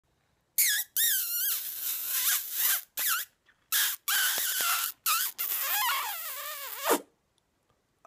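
A young man whistles a wavering tune close by.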